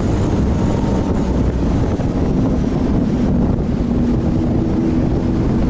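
Tyres roll on smooth pavement with a steady low rumble.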